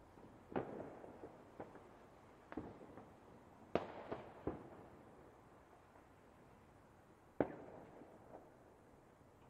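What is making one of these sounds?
Fireworks burst with sharp booms and crackle in the distance.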